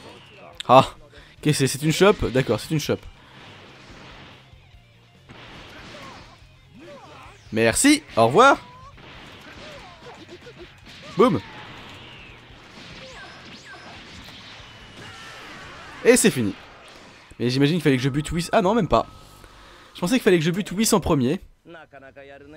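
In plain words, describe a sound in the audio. Energy blasts whoosh and roar in bursts.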